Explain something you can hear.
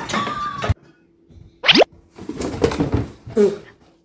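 A cardboard box scrapes and rustles as a cat pushes into it.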